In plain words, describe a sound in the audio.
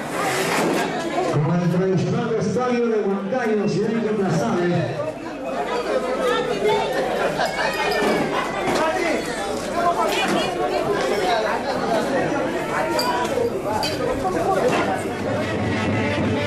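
A crowd of men and women chatters and calls out loudly nearby.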